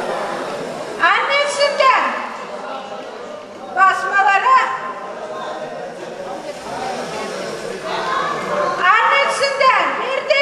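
A woman sings out in high, ringing trills.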